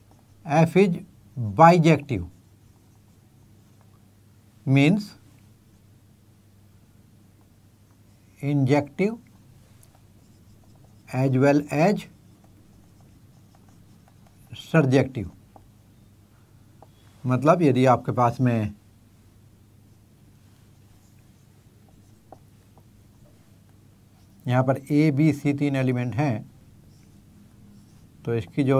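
An elderly man speaks calmly in short phrases, close to a microphone, with pauses between them.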